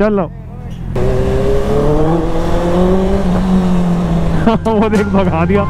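A motorcycle engine hums close by as it rides along the street.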